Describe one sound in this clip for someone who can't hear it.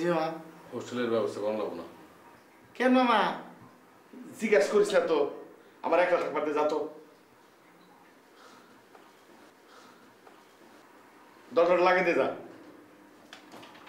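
A middle-aged man speaks animatedly nearby.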